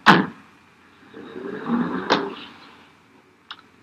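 A car engine hums as the car pulls away.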